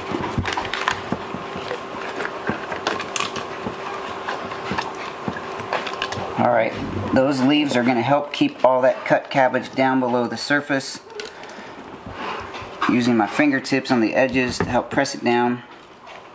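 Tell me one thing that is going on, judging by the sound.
Shredded cabbage crunches and squeaks as a hand packs it down into a glass jar.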